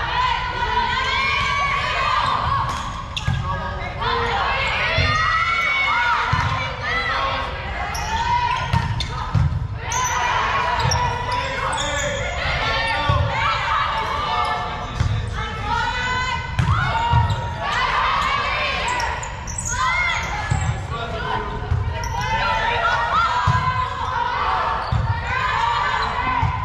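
Sneakers squeak on the gym floor.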